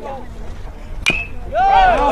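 A baseball bat cracks sharply against a ball.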